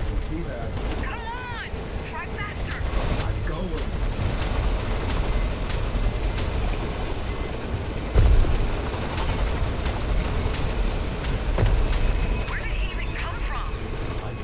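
A young man talks through a headset microphone.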